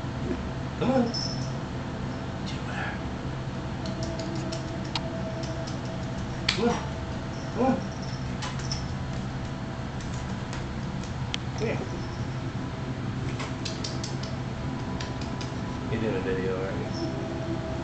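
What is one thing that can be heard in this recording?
A cat's paws patter and skid on a wooden floor.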